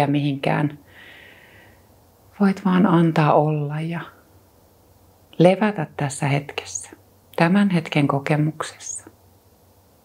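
A woman speaks softly and calmly into a microphone, close by.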